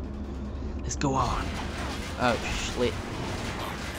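A young man speaks into a close microphone with animation.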